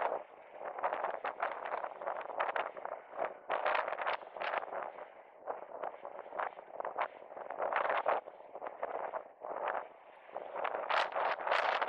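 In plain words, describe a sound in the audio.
Inline skate wheels roll and scrape on asphalt in a steady stroking rhythm.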